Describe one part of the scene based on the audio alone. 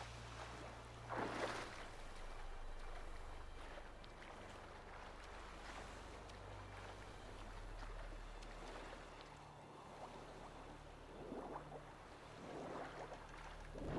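Water splashes as a swimmer strokes through it.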